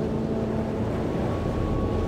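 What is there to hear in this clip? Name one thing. A cello plays a slow melody with an orchestra.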